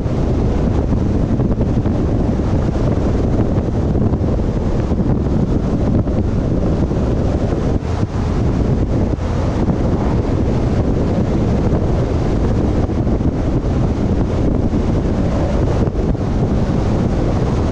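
Wind buffets loudly outdoors as a vehicle drives along.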